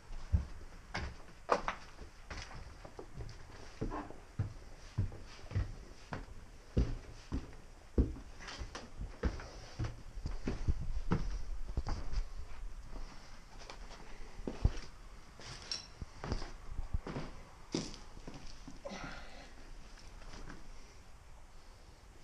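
Debris crunches and rustles underfoot.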